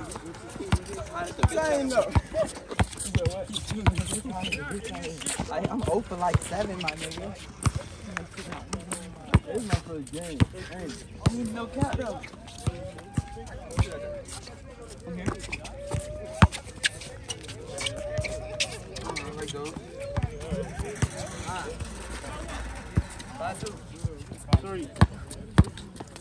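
A basketball bounces repeatedly on asphalt.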